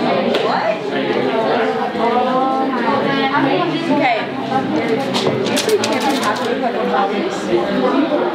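A girl speaks with animation nearby.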